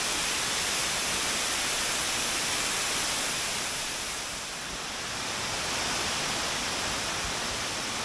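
A waterfall roars steadily, rushing and splashing onto rocks.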